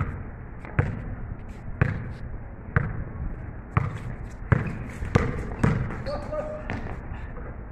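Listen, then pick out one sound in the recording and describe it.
A basketball bounces on a hard court with echoing thuds.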